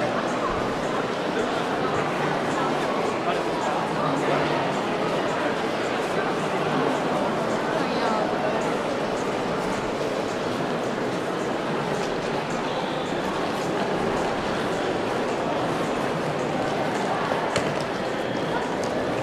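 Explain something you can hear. Many footsteps tap and shuffle on a hard floor.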